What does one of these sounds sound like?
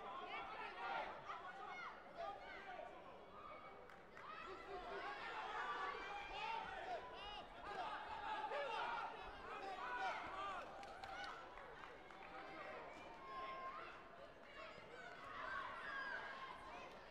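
A crowd of spectators shouts and cheers throughout a large echoing hall.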